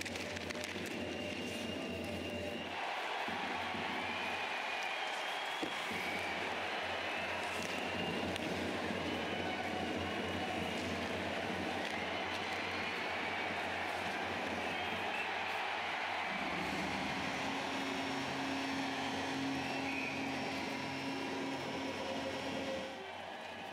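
A large crowd roars and murmurs in an echoing arena.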